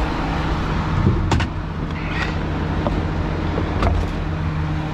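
Metal tools clank and rattle in a storage box.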